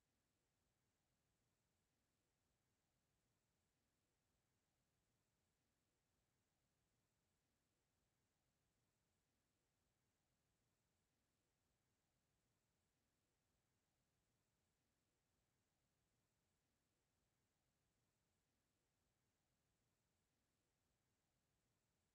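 A clock ticks faintly and steadily.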